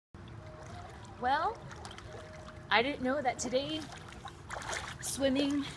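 Water splashes gently in a pool.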